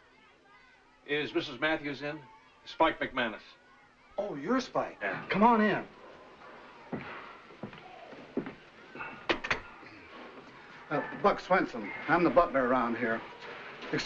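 A middle-aged man talks.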